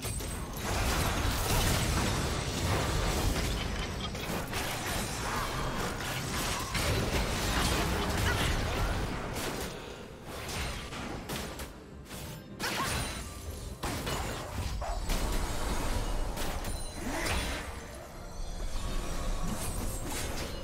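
Spell blasts and hits crackle and boom in a game fight.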